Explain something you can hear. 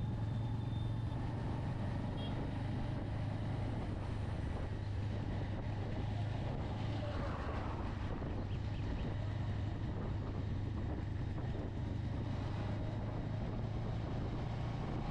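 A motorcycle engine hums steadily at low revs while riding.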